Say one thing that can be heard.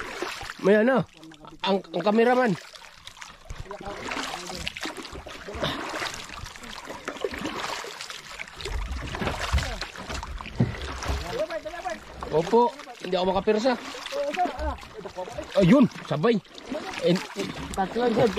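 Water laps against a boat's hull outdoors.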